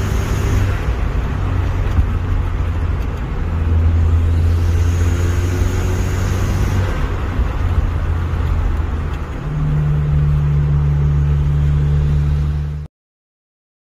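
A car engine hums steadily as a car drives closer along a road.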